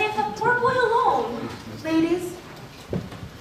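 A young woman shouts with animation in a room with some echo.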